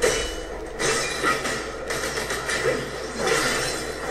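Blades clash with sharp metallic hits.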